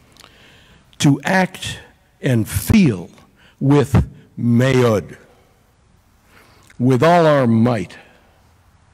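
An older man speaks slowly and forcefully into a microphone in a large echoing room, with long pauses.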